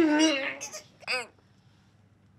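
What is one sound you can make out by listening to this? A young man laughs loudly and wildly.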